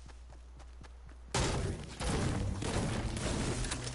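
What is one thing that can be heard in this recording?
A pickaxe strikes wood with repeated hollow thuds.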